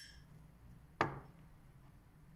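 A ceramic bowl is set down on a wooden table with a dull knock.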